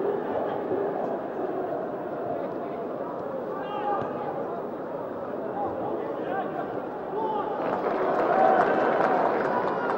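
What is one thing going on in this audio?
A large stadium crowd roars and murmurs steadily, swelling louder toward the end.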